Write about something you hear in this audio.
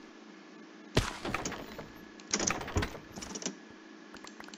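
Glass shatters and breaks apart.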